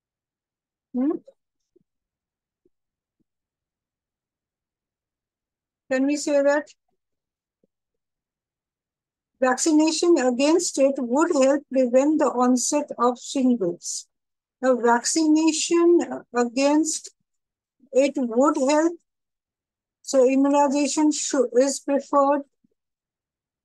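A woman speaks calmly and clearly through a close microphone, pausing between phrases.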